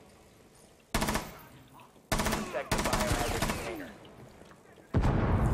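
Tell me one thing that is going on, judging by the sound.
Rapid gunfire rattles in bursts, loud and close.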